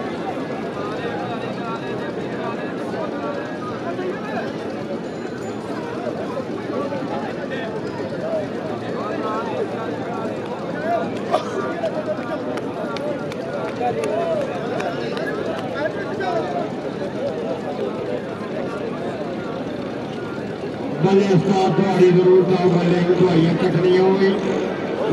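A large crowd shouts and cheers outdoors in the distance.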